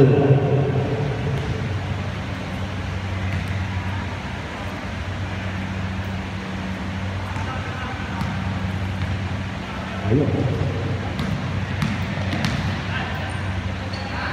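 A basketball bounces on the floor.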